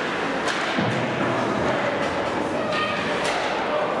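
Bodies thud against the boards.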